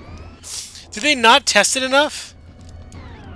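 A young man speaks with animation into a headset microphone.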